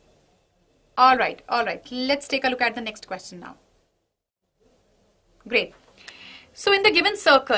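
A young woman speaks clearly into a close microphone, explaining calmly.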